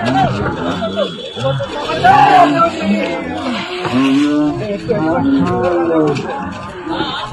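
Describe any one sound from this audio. Several men shout excitedly close by.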